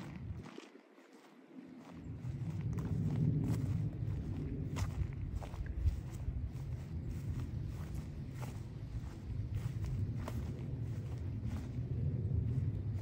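Wind rustles through the leaves of trees.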